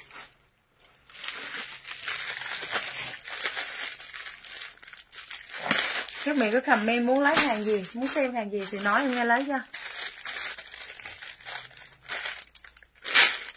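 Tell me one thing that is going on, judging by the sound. Plastic wrapping rustles and crinkles.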